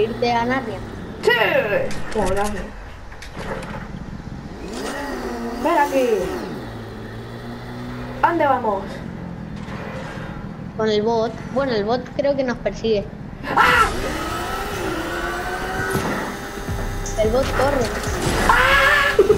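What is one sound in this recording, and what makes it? A motorbike engine hums and revs.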